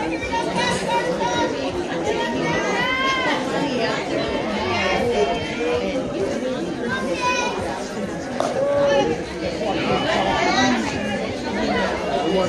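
Young women shout and chant with animation outdoors.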